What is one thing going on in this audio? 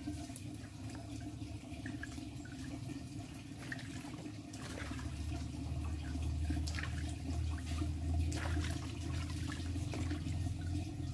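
Water sloshes and splashes in a basin as hands scrub something.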